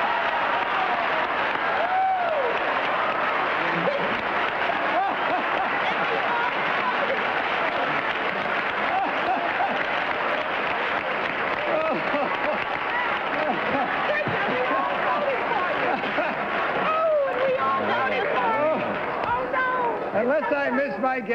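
A man laughs heartily into a microphone.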